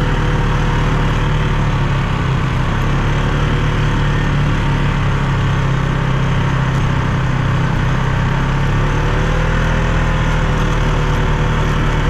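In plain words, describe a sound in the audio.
Tyres crunch over sand and gravel.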